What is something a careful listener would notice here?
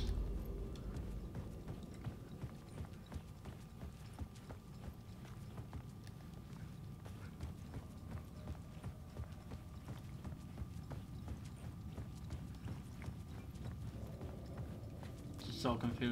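Footsteps crunch on gravel at a steady walking pace.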